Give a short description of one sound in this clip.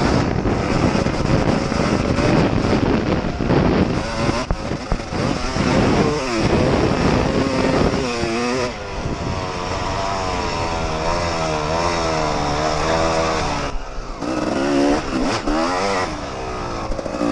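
Wind buffets loudly.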